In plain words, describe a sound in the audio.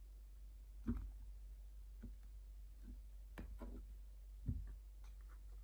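Playing cards tap and slide softly on a cloth surface.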